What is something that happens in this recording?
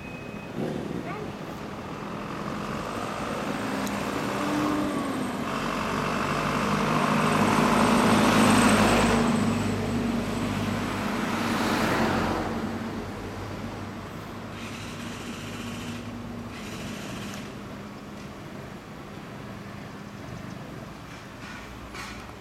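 Vehicle engines idle and rumble steadily nearby.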